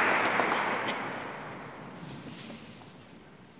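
Footsteps of a man walk across a hard floor in a large echoing hall.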